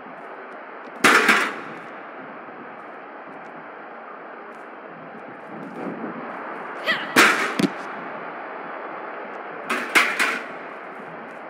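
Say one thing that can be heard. A metal chair slams hard against a body several times.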